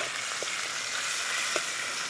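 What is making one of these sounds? A metal spatula scrapes against a metal pan.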